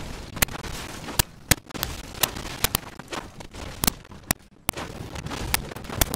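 Gunshots crack sharply in quick, uneven bursts.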